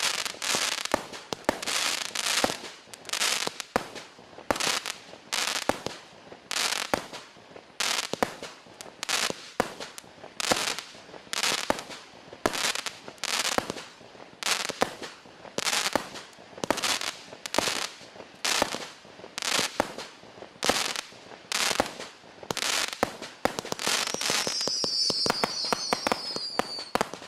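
Fireworks shells burst with sharp bangs, one after another.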